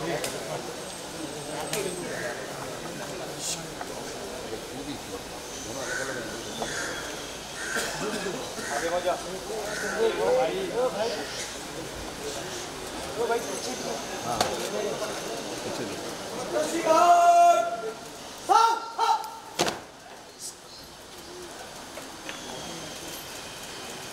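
A crowd murmurs and talks in the open air.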